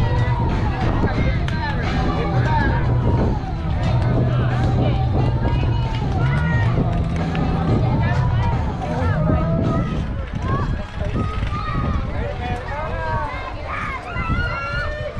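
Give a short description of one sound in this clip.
Young girls shout and chant loudly outdoors.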